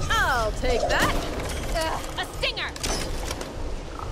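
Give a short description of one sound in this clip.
A wooden crate creaks open.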